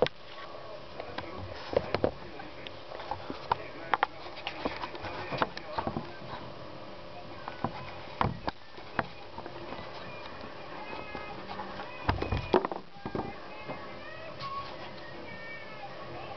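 Feral pigeons peck at food on a wooden board.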